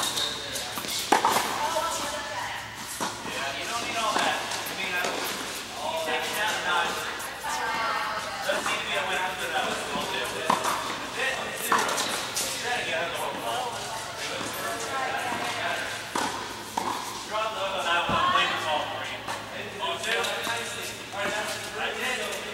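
Rackets hit tennis balls in a large echoing indoor hall.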